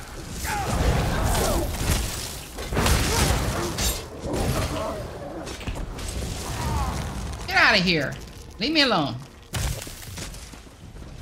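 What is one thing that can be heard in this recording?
Spells blast and crackle in a fight.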